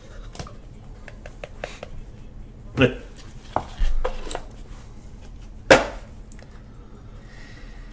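Gloved hands slide a lid off a cardboard box.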